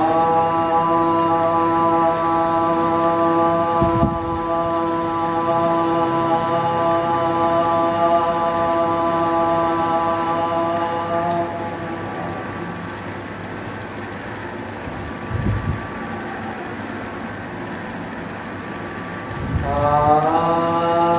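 A man hums a long, steady tone close to a microphone.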